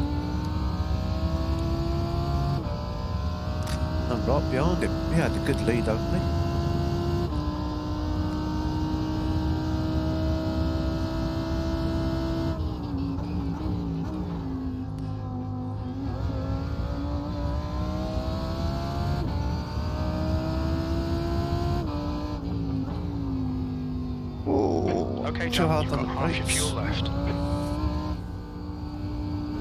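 A racing car engine roars steadily, rising and falling in pitch as gears change.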